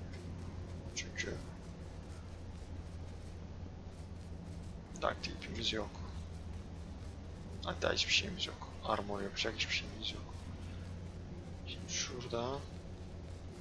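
A young man talks casually and close to a microphone, in short bursts.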